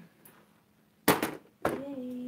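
A hard plastic case is set down on a wooden table with a thud.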